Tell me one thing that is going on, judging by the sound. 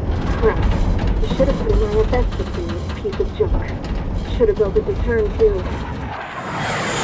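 A man speaks tensely over a radio.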